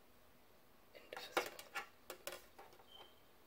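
A plastic disc clicks and rattles as it is handled.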